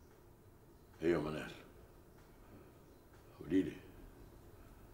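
A middle-aged man speaks into a telephone.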